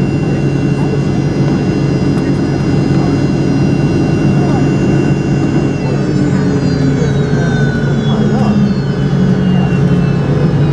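A jet engine roars loudly and steadily close by, with a high whine that shifts in pitch.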